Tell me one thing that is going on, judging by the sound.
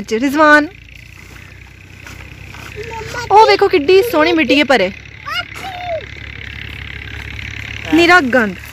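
A young child talks and calls out excitedly close by.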